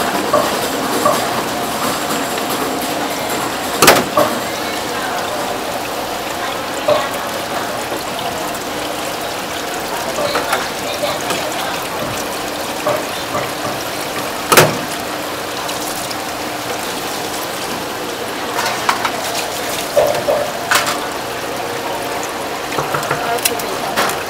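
Water runs steadily from a hose into a metal sink.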